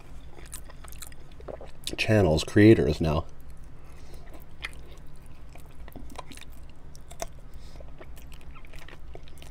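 A man chews and bites into chicken wings close to the microphone.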